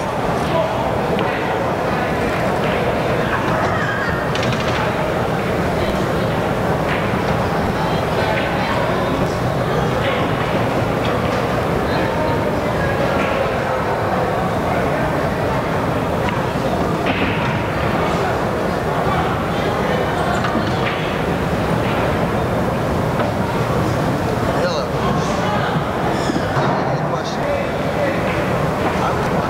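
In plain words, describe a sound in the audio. A crowd murmurs and chatters steadily in a large echoing hall.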